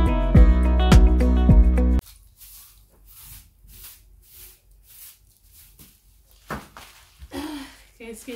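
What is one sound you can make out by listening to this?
A broom sweeps across a hard floor with brisk scratching strokes.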